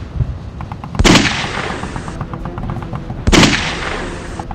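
A rifle fires loud shots outdoors.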